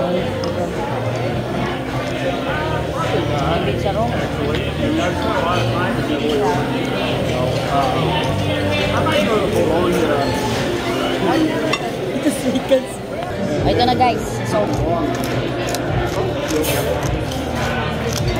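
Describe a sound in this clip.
A pepper mill grinds with a dry crunching.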